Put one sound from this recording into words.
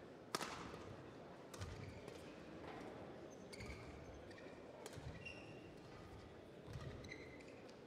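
Shuttlecock hits crack sharply from rackets in a large echoing hall.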